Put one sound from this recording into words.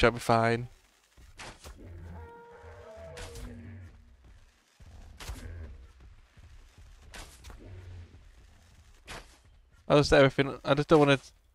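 A bow string twangs as arrows are shot, several times.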